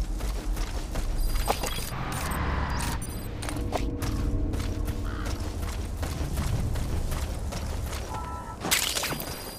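Quick footsteps rustle through dry grass.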